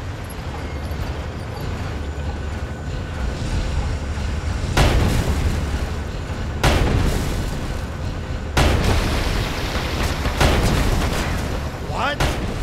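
An engine rumbles steadily.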